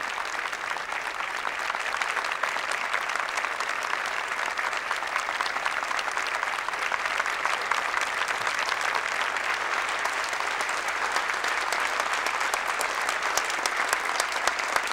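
A large crowd applauds steadily outdoors.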